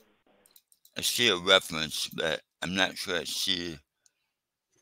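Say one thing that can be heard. An elderly man speaks calmly through a headset microphone over an online call.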